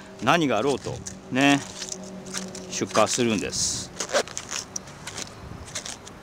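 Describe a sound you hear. Cabbage leaves crackle and snap as hands tear them off.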